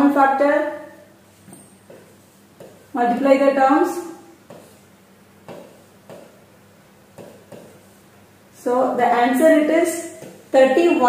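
A woman speaks calmly, explaining in pauses, close by.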